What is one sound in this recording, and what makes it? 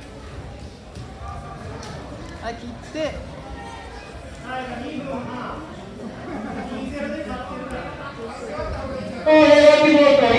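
People talk quietly in the background.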